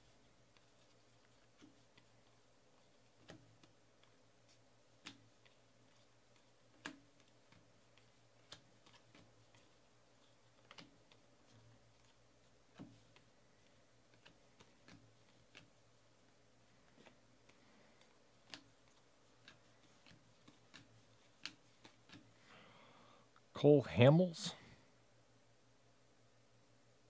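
Trading cards are shuffled and flicked, with soft clicks and taps.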